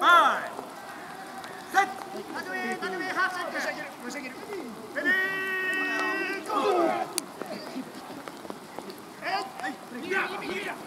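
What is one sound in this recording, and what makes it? Young men shout loudly nearby outdoors.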